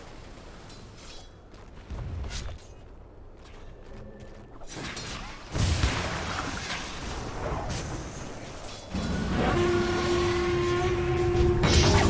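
Game spell effects and weapon hits crackle and clash in a fight.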